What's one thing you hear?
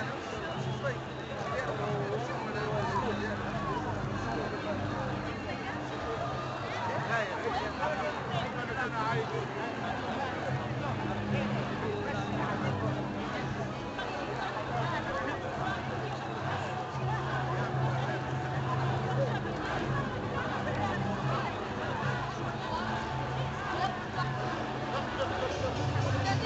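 A large crowd of men and women chatters and chants outdoors, close around.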